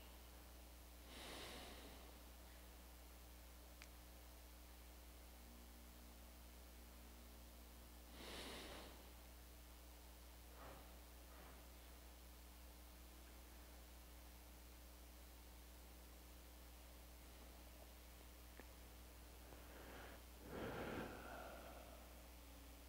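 An elderly man breathes out deeply close to a microphone.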